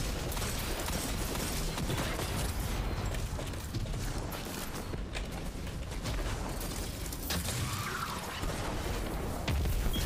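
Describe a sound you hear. Game gunfire cracks and booms in quick bursts.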